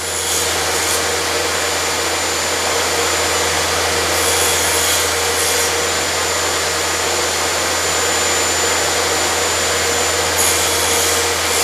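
A table saw blade spins with a steady loud whine.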